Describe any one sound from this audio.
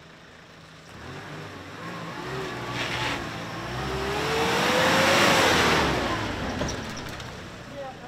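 A vehicle drives slowly past close by.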